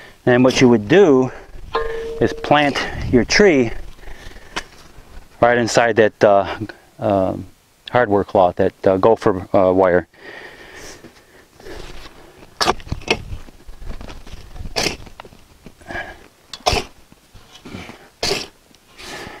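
A shovel scrapes and chops into dry dirt.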